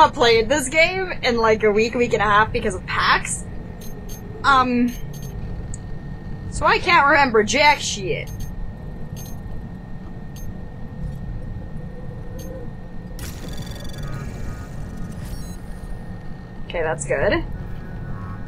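A young woman talks and laughs with animation into a close microphone.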